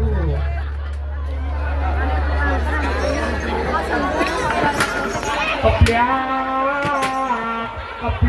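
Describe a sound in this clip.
A large crowd chatters loudly outdoors.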